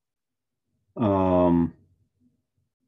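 A second man speaks with animation through a microphone on an online call.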